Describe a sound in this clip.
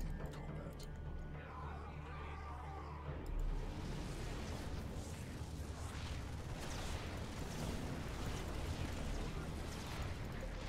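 Gunfire and explosions of a game battle crackle and boom.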